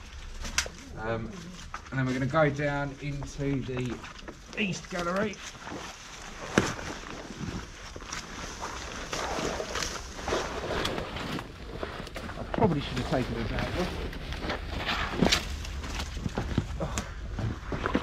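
Footsteps crunch on leaves and dry twigs.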